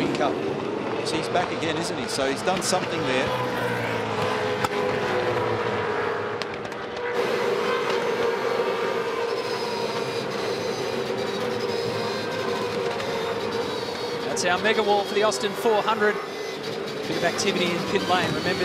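Racing car engines roar at high speed close by.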